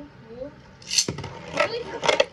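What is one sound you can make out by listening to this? A spinning top is launched into a plastic arena with a sharp rattle.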